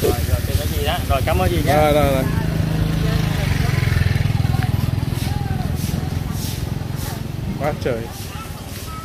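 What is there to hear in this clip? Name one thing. A man talks nearby.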